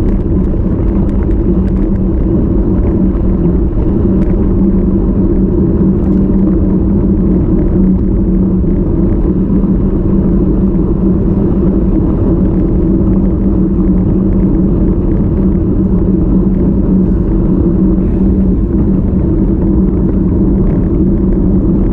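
A bicycle drivetrain whirs steadily.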